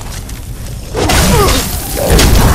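A blast of crackling magic bursts out.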